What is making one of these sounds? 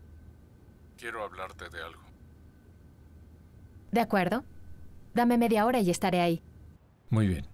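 A young woman talks warmly on the phone.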